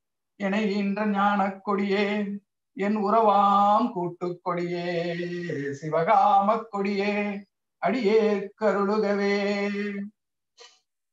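A middle-aged man reads aloud steadily over an online call.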